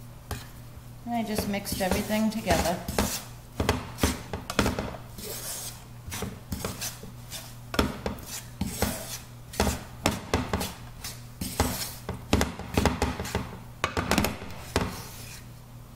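A wooden spatula scrapes and taps against a pan.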